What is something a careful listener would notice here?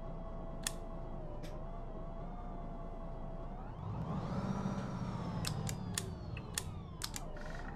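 A bus engine hums steadily, then revs up and slowly winds down.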